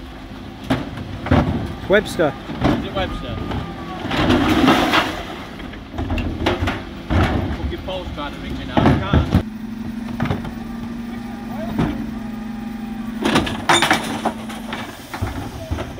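A garbage truck engine idles steadily nearby.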